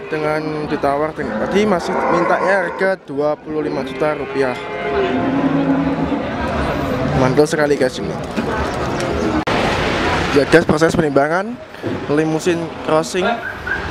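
A crowd of men chatter outdoors.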